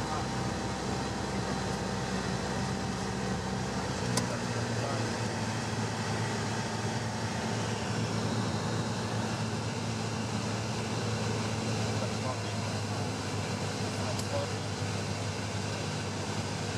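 Wind rushes over a small plane's cabin.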